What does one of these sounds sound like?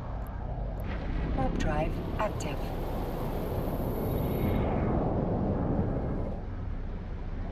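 A spaceship's engines roar with a rising whoosh as it jumps away.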